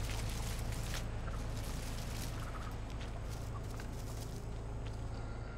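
Footsteps tread on grass and wooden boards.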